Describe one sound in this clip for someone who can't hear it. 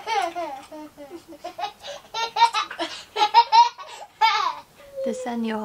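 A toddler babbles and squeals excitedly close by.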